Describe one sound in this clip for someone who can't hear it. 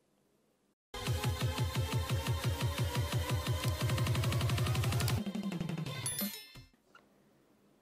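A short musical jingle plays.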